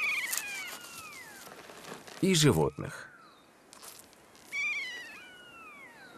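A bird tears and pecks at a carcass with its beak.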